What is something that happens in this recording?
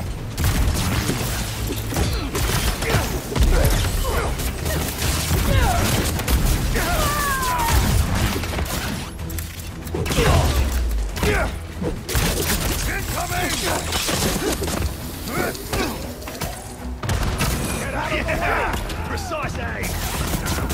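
Blows and impacts thud and clang in a fast fight.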